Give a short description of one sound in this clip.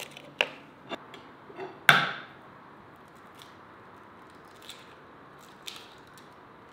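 Eggs crack against the rim of a ceramic bowl.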